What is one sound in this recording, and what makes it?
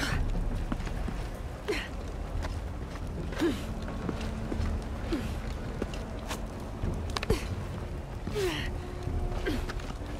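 Hands and boots scrape and knock against rock during a climb.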